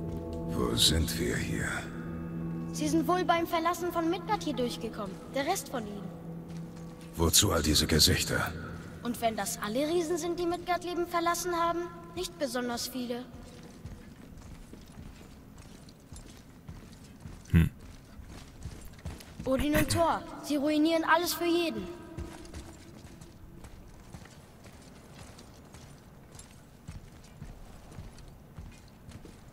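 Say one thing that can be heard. Footsteps scrape on stone.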